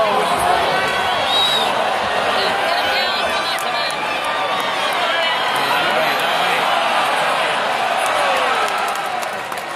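A large crowd cheers and shouts loudly in a big echoing hall, then quiets down.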